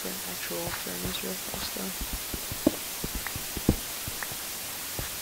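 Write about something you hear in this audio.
Dirt and stone crunch in short bursts as blocks are dug out.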